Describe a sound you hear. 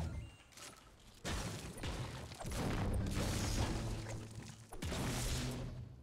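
A pickaxe strikes stone with sharp knocks.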